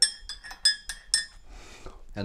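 A spoon clinks against a china teacup as it stirs.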